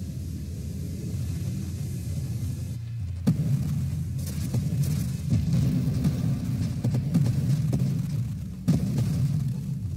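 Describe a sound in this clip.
Small explosions pop and crackle.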